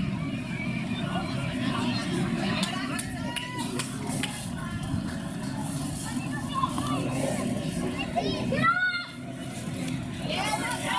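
A crowd of spectators murmurs and cheers outdoors.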